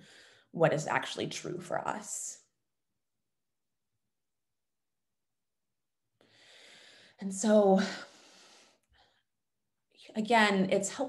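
A woman speaks thoughtfully through an online call, pausing between phrases.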